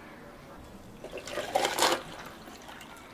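Water pours over ice in a glass.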